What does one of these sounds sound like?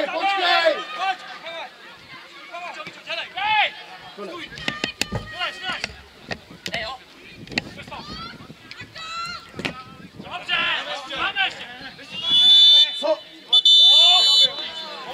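Men shout to each other across an open football pitch outdoors.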